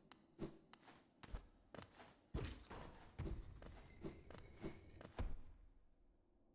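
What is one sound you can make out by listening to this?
Sword slashes swish sharply in a video game.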